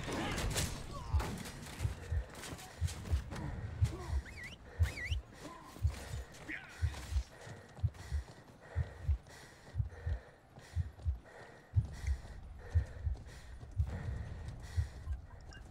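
Horse hooves thud steadily on stone.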